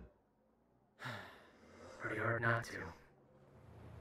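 A deep voice answers calmly and closely.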